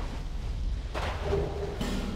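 A magical spell whooshes and shimmers.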